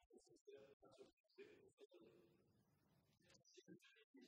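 A middle-aged man speaks formally into a microphone.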